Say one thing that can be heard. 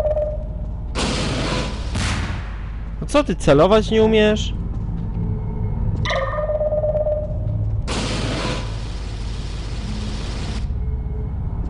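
A rocket launches with a loud rushing whoosh.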